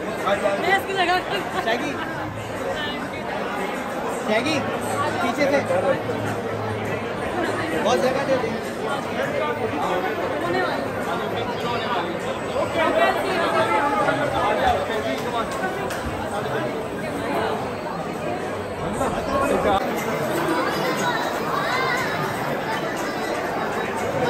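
A crowd of men and women chatters loudly all around, close by.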